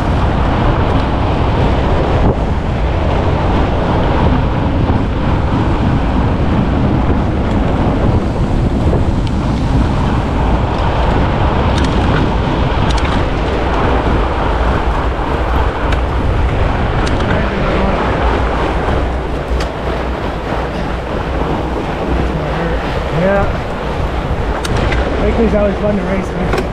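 Bike tyres crunch over packed snow.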